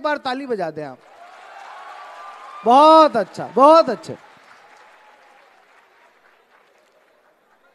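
An audience cheers and claps.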